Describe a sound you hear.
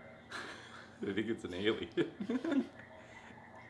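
Two young men laugh.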